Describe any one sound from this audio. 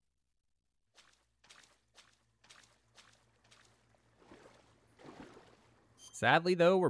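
Footsteps crunch softly through grass.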